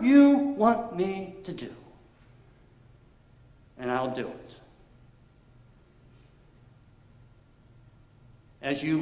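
A middle-aged man speaks slowly and deliberately through a microphone in an echoing hall, pausing between phrases.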